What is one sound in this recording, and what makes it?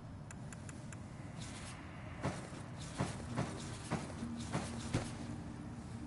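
Short soft menu clicks and blips sound one after another.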